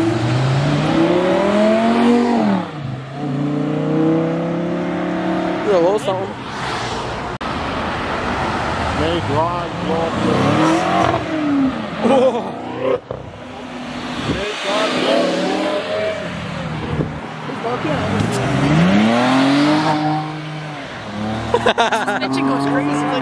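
Sports car engines rev loudly and roar past one after another.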